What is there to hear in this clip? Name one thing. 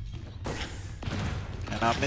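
A blaster fires with a sharp electronic zap.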